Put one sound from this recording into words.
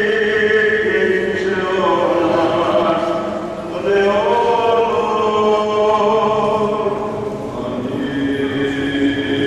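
A choir of men chants together in a slow, sustained melody, echoing in a large hall.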